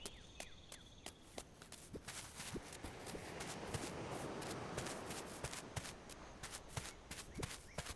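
Footsteps crunch quickly across dry ground.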